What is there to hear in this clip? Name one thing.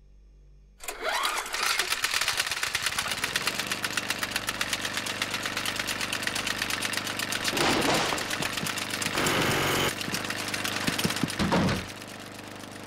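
An electric drill whirs loudly with a rapid rattle.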